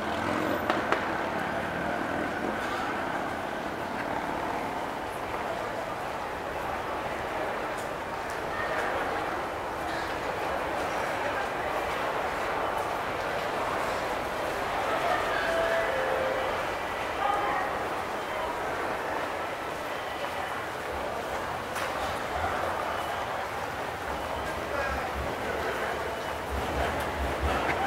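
A crowd murmurs in a large, echoing hall.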